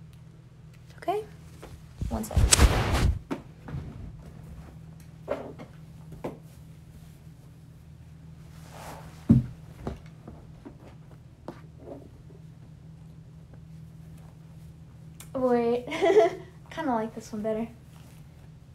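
A young woman speaks softly, close to the microphone.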